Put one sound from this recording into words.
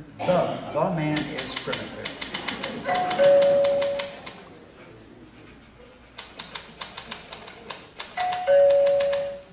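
A typewriter clatters in quick bursts.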